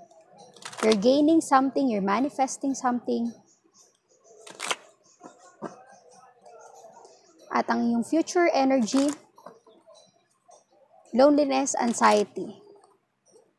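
Playing cards riffle and flutter as they are shuffled.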